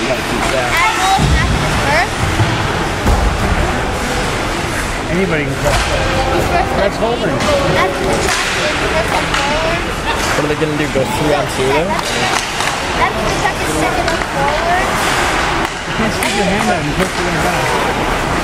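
A crowd of spectators chatters nearby in a large echoing arena.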